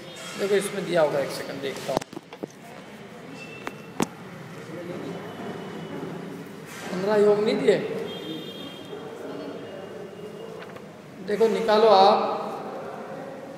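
A man speaks into a microphone in short, calm phrases with pauses.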